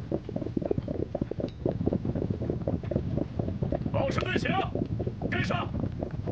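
Many horses' hooves thud and clop on the ground.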